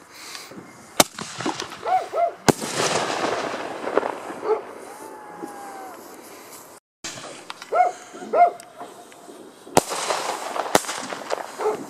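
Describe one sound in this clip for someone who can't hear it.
Fireworks bang sharply outdoors.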